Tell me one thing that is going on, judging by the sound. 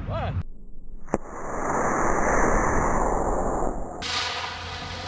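A rocket motor roars loudly as a model rocket launches.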